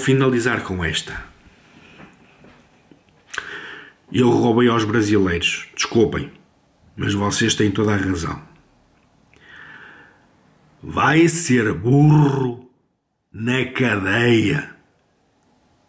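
A middle-aged man talks calmly and close up, in short bursts with pauses.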